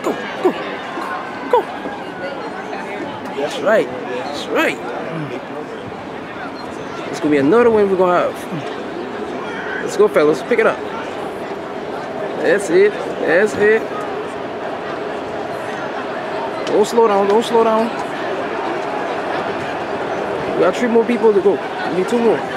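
Men and women chatter and call out outdoors, nearby and in the distance.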